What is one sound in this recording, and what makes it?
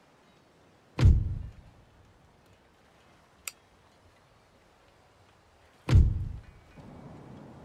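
A soft interface thump sounds as a menu panel opens.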